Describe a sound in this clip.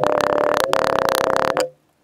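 A rammer tamps casting sand into a wooden flask.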